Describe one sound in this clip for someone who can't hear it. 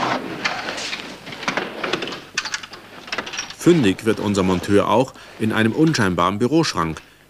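A man rummages through files on a shelf.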